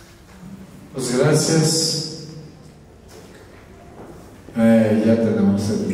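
A man speaks through a microphone in an echoing room.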